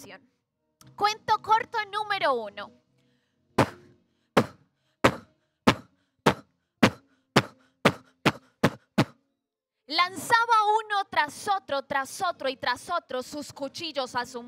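A young woman speaks with animation through a headset microphone.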